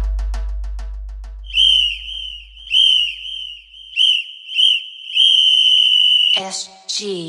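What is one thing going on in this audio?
Large drums are beaten hard in a fast rhythm.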